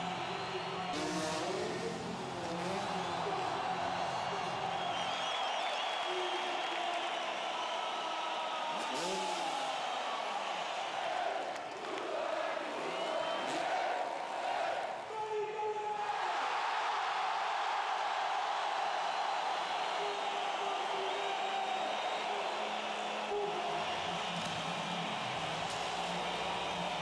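A large crowd cheers and roars in a huge echoing arena.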